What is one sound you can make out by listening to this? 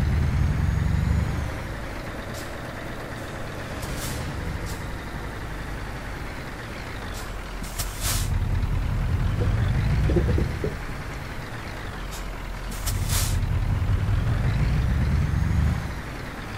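A truck engine rumbles low and surges as it accelerates.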